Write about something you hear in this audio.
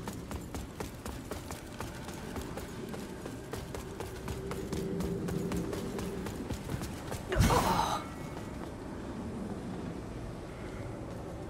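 Armoured footsteps clatter quickly over stone.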